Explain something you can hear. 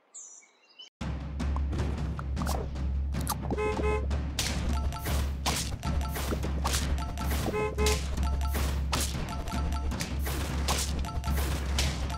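Lively game music plays loudly with a steady beat.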